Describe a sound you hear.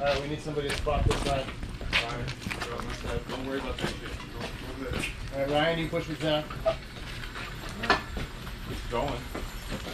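Hand truck wheels roll and rattle across concrete.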